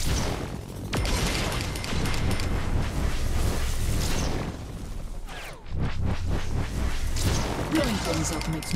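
A heavy gun fires in loud, roaring bursts.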